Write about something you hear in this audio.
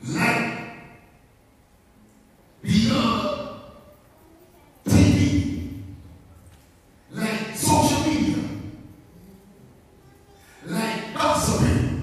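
A middle-aged man preaches forcefully into a microphone in short, loud bursts with pauses between, echoing in a large hall.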